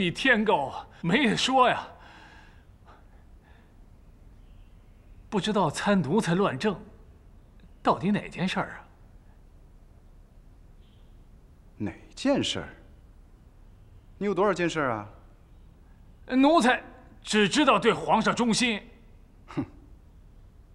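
An elderly man speaks pleadingly and with emotion, close by.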